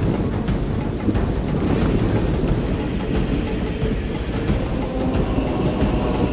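A large army's many footsteps tramp steadily over grass.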